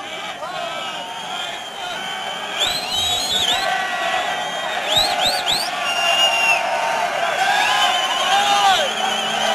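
A large crowd cheers and screams in a big echoing arena.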